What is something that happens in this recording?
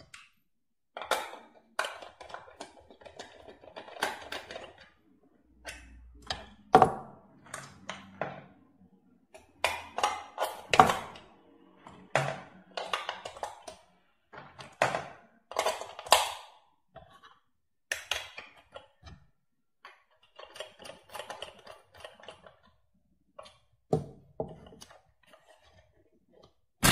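Plastic parts of a toy click and knock as they are handled.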